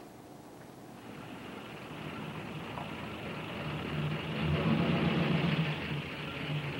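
A car engine runs and grows louder.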